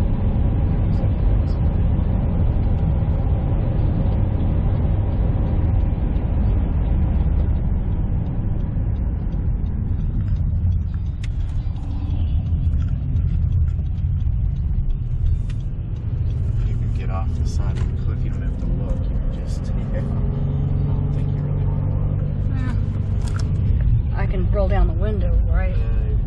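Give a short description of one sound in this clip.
A car engine hums and tyres roll steadily on the road.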